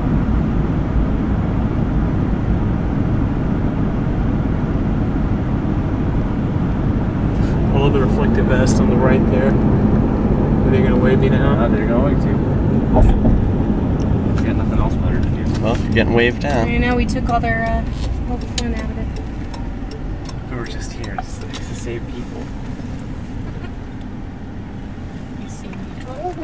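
A car engine hums steadily with road rumble and fades as the car slows.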